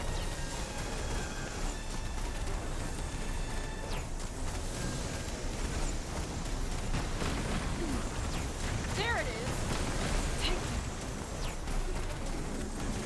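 Loud magical blasts and crashing impacts ring out in quick succession.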